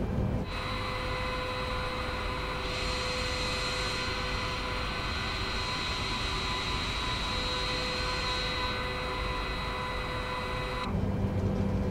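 Jet engines whine loudly and steadily from outside the airliner.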